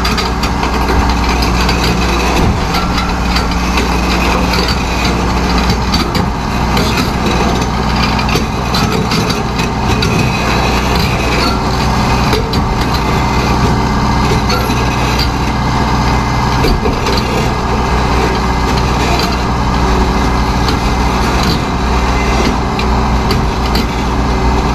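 Metal clanks and scrapes as an excavator works.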